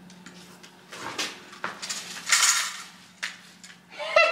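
A grabber tool clatters against a can on a hard floor.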